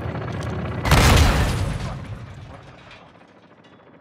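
A grenade explodes with a loud, rumbling boom.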